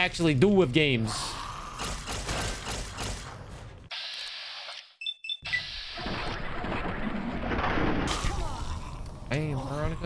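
Gunfire rings out in a game.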